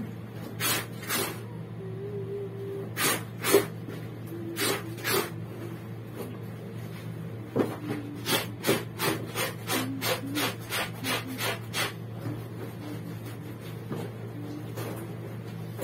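Wet laundry is scrubbed and sloshed in a basin of water, in short bursts.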